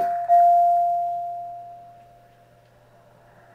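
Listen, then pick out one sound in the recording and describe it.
A bright chime rings from a television and slowly fades.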